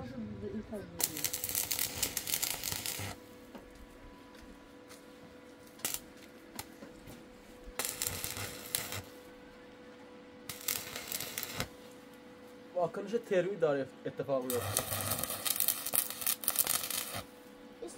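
An electric welder crackles and hisses in bursts.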